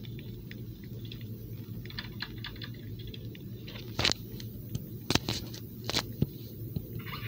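Quick footsteps tap on a hard floor.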